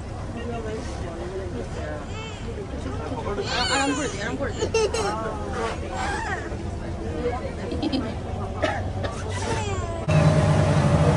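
Several adults talk nearby in casual voices.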